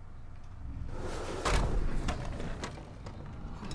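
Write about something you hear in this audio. Wooden blocks knock and clatter on a table.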